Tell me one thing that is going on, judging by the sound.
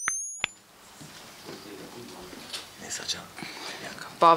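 A woman speaks calmly into microphones nearby.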